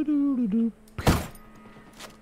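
A suppressed rifle fires a single shot.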